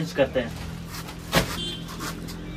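Plastic bags rustle as a man handles them.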